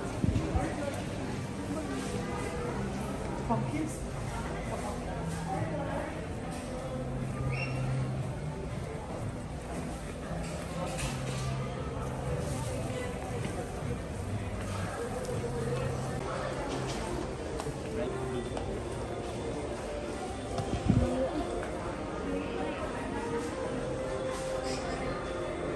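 Shoppers murmur and move about in a large echoing indoor hall.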